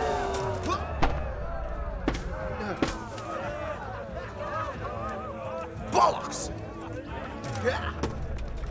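A sword strikes a wooden shield with sharp knocks.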